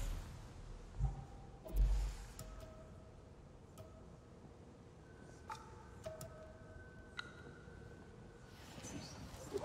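Soft game menu chimes blip now and then.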